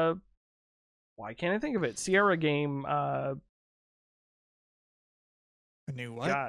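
A man speaks with animation into a close microphone, heard over an online call.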